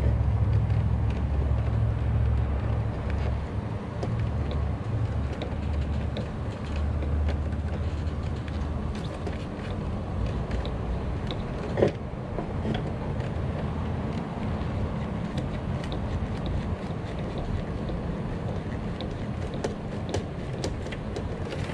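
Wires rustle and scrape against a metal panel.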